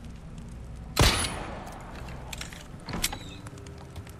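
A pistol fires a few sharp shots.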